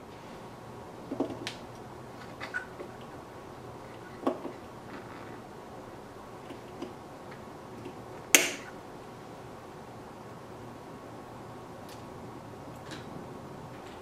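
Wires and small plastic parts click and rustle as hands work inside a device.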